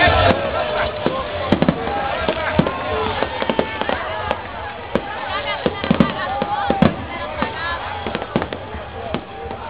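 Fireworks crackle and sizzle as they burst.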